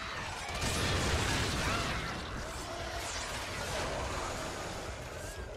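Game weapons blast and crackle with sparks.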